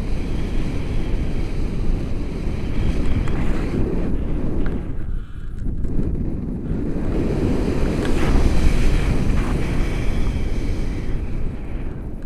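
Strong wind rushes and buffets loudly, as if in flight high outdoors.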